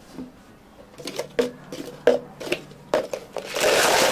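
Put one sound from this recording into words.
Plastic cups are set down on a counter with light knocks.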